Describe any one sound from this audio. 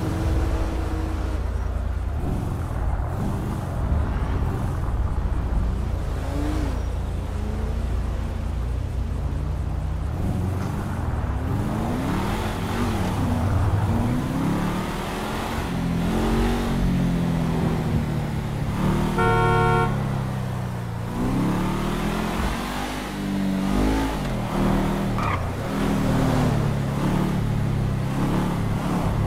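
A car engine hums and revs as the car drives along a road.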